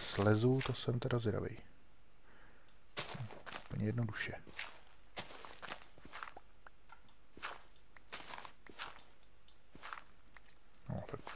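Gravelly crunches sound as dirt is dug out, one block after another.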